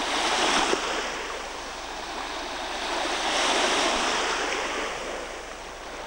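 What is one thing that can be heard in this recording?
A boy splashes while swimming in the water nearby.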